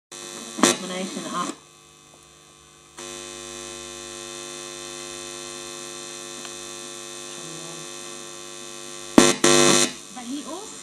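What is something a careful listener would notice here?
Small metal clips click and scrape as fingers handle them.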